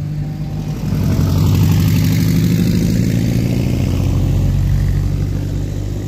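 A small car engine rumbles loudly as a buggy drives past close by.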